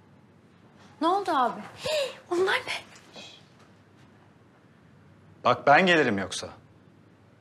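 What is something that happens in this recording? A young woman speaks brightly nearby.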